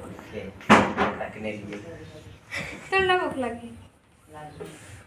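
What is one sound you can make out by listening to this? A girl speaks softly.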